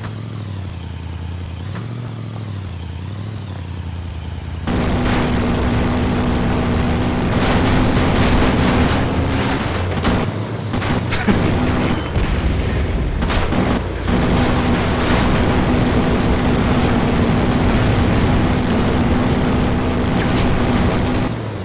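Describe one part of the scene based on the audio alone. A vehicle engine hums and rumbles steadily.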